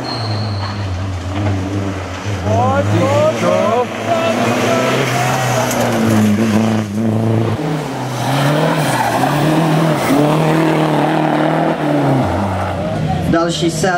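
A rally car engine roars and revs hard as the car speeds past.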